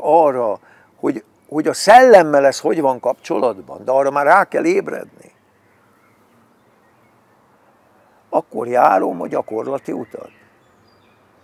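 An elderly man talks with animation, close by.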